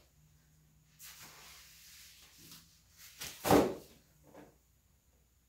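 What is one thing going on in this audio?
A gloved hand squelches in a tray of wet paint.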